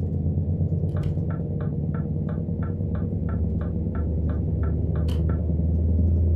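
A truck's turn signal ticks.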